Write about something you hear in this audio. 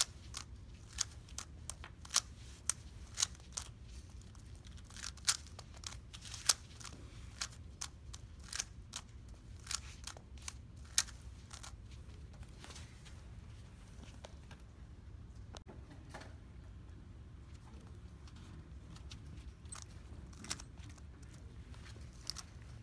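A puzzle cube clicks and clacks rapidly as its layers are turned.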